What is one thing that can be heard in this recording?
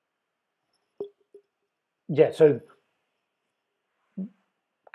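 A middle-aged man speaks briefly and haltingly over an online call.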